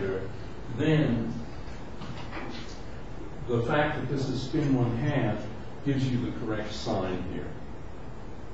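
An elderly man lectures calmly.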